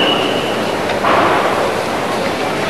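A young man lets out a short, loud shout.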